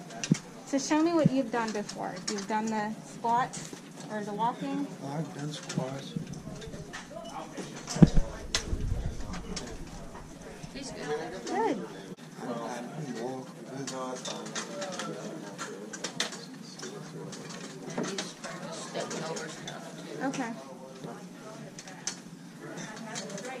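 A woman speaks calmly and encouragingly close by.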